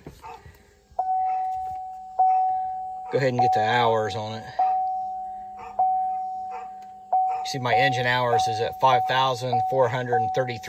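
A car's warning chime dings over and over at a steady pace.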